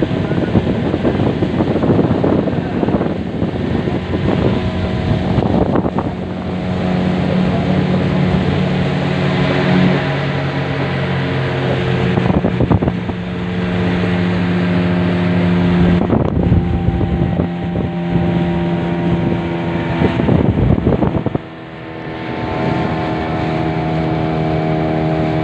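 Wind buffets loudly in the open air.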